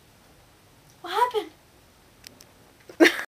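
A young girl speaks briefly and casually close by.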